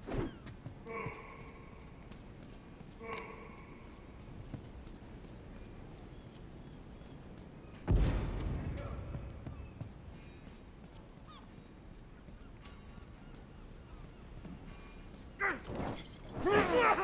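Footsteps fall on hard ground.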